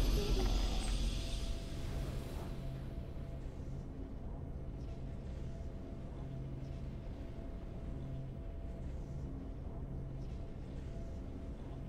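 A low, steady game music drone hums on.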